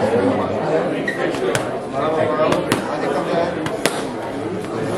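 Gloved fists smack sharply into a man's raised hands.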